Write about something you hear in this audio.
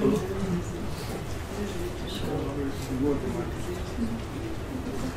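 A young man speaks steadily into a microphone, heard through a loudspeaker in a large room.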